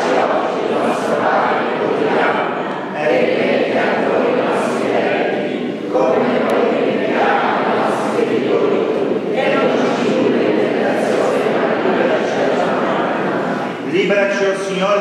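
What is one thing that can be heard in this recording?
A congregation of men and women sings together in a reverberant hall.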